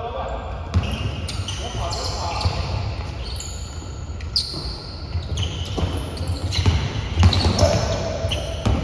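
Young men call out to each other during a game, echoing in a large hall.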